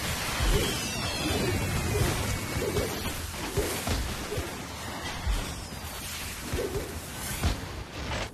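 Explosions boom in a game battle.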